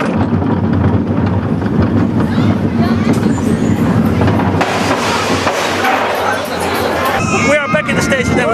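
A roller coaster train rumbles and rattles along its track.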